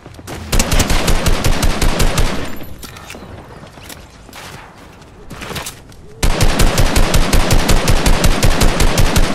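A rapid-fire gun shoots bursts of quick, loud shots.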